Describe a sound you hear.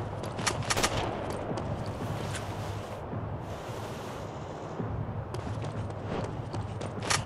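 Footsteps crunch on cobblestones.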